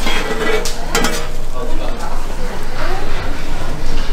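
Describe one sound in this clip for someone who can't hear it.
A metal spatula scrapes across a griddle.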